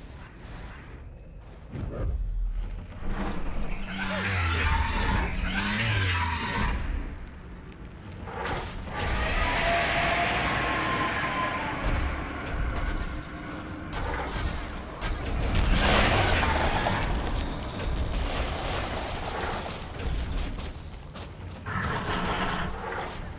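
Battle sounds of spells, blasts and weapon strikes crash and whoosh.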